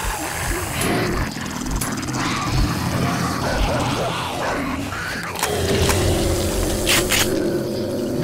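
Shotgun blasts ring out several times.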